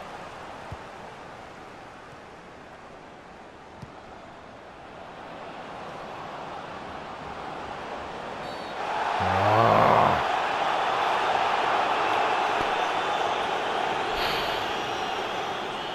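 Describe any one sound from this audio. A stadium crowd murmurs, then swells into a loud roar.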